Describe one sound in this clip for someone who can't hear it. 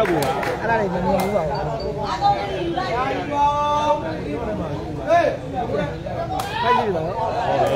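A large outdoor crowd chatters and calls out loudly.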